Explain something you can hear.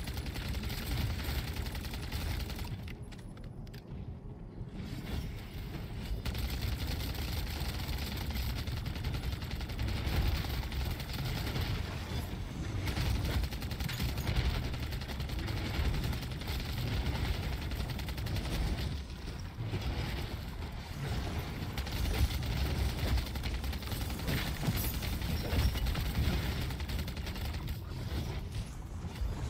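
Gunfire rattles rapidly.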